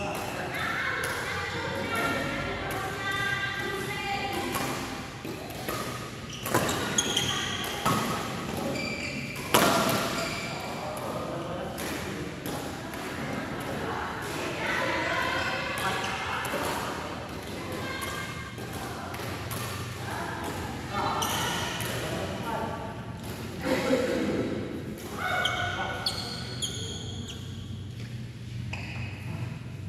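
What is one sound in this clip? Men call out to each other across an echoing court.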